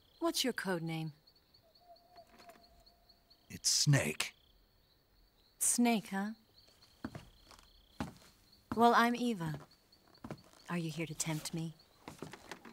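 A young woman speaks softly and slowly, in close, clear sound.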